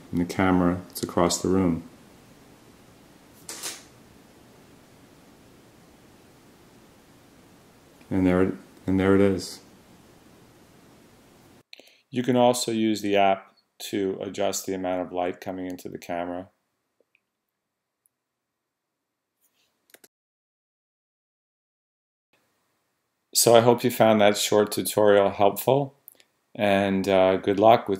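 A middle-aged man speaks calmly, close to the microphone, with pauses.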